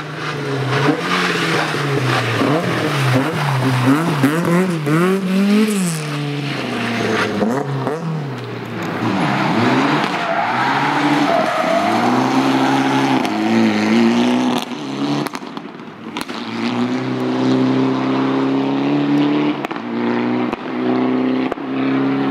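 A rally car engine revs hard and roars through its gears.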